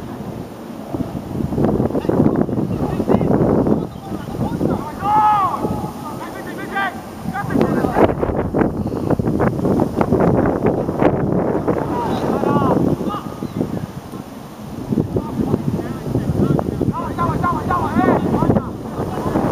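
Players shout to each other across an open field in the distance.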